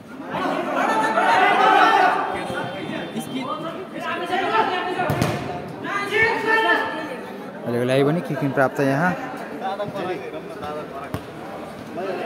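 A ball is kicked hard on an indoor pitch.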